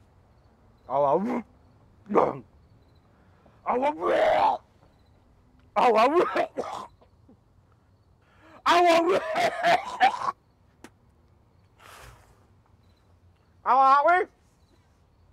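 A middle-aged man groans.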